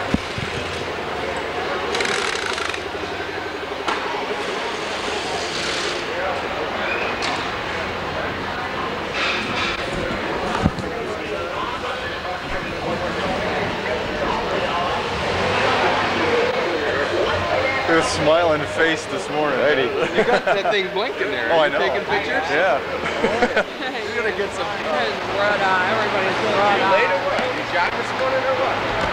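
Several people talk and murmur in a large echoing hall.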